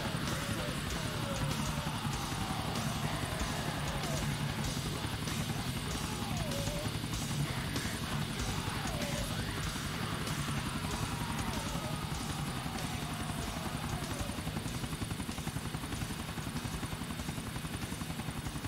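A helicopter's rotor chops steadily and loudly.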